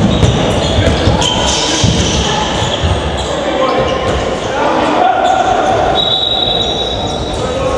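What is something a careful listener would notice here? Young players shout to each other in an echoing hall.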